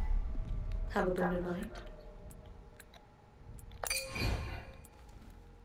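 A menu chime rings as an option is picked.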